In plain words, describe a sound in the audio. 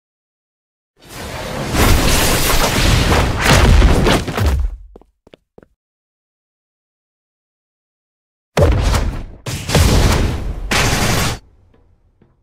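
Loud whooshing attack effects burst out in a game.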